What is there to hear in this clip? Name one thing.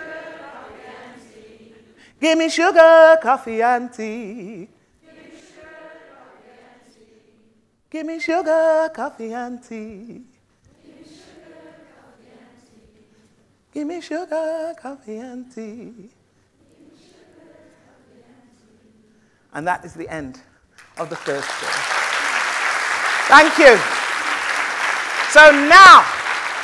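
A woman sings and speaks expressively through a microphone in a large hall.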